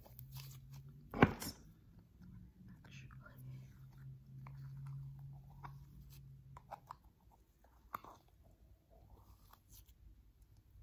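Hands squeeze and pull a sticky squishy toy up close, with soft crackles and clicks.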